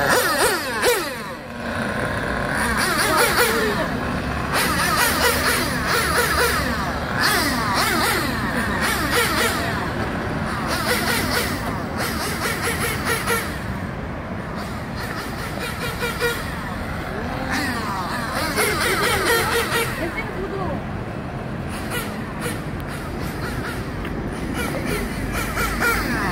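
Small tyres scrape and hiss on rough concrete.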